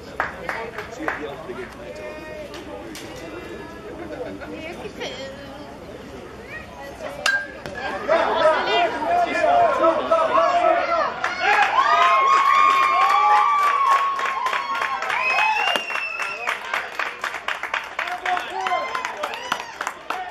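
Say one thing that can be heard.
A crowd of spectators cheers and shouts outdoors, growing louder partway through.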